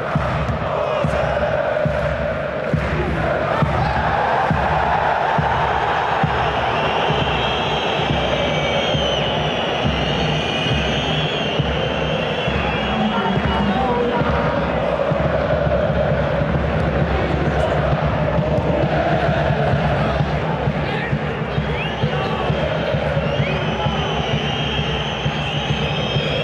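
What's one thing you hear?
A large crowd chants and sings steadily in an open stadium.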